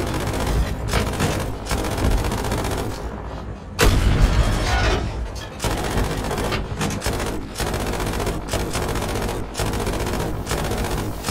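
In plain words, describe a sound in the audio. Heavy gunfire rattles on and off.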